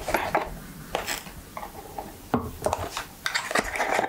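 A perfume bottle clinks softly as it is set down.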